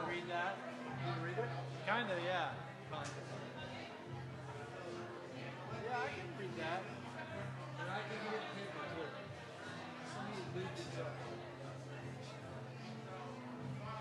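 A man sings into a microphone over loudspeakers.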